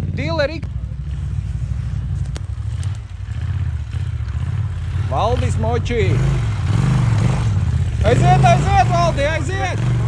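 A second motorcycle engine idles and rumbles nearby.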